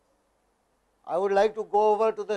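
A man speaks through an online call microphone.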